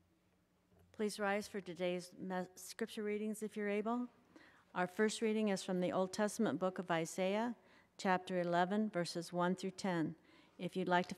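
An elderly woman reads aloud calmly through a microphone.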